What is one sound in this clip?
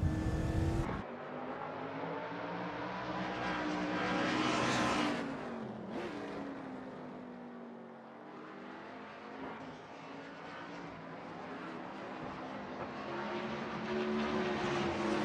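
Race car engines whine past at speed.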